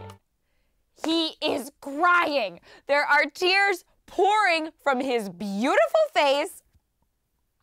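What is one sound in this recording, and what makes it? A young woman talks excitedly, close by.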